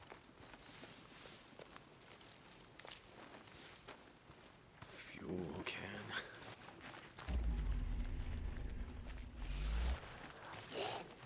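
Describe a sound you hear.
Footsteps rustle through grass and then crunch on gravel.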